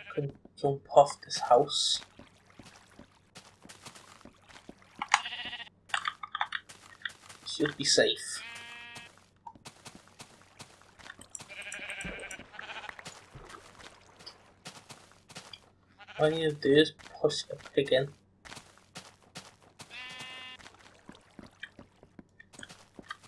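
Footsteps tap steadily on wood and grass.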